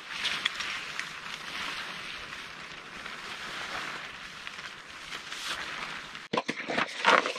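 Tent fabric rustles and flaps as it is pulled taut.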